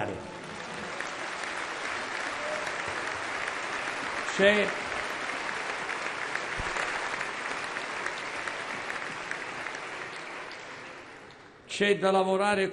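A large crowd applauds steadily in a big echoing hall.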